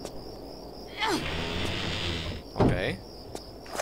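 Heavy doors creak and grind open.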